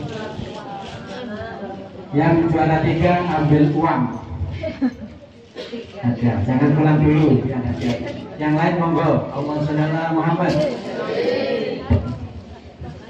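An elderly man speaks with animation through a microphone and loudspeakers in an echoing hall.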